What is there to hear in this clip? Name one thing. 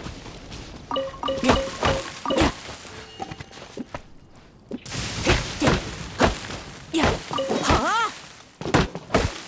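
A sword chops at a tree trunk.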